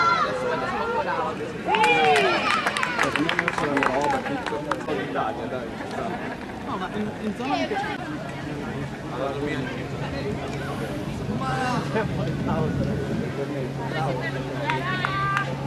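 A crowd of young spectators shouts and cheers outdoors.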